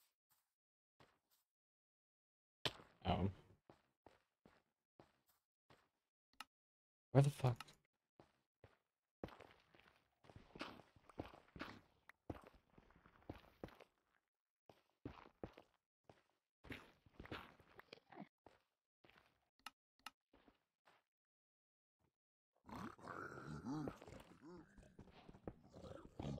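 Footsteps crunch on rock in a game.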